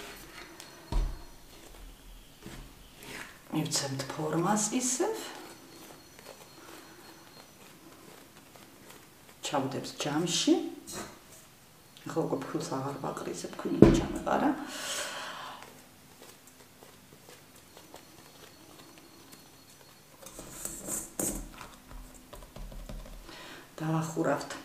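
Hands pat and knead soft dough.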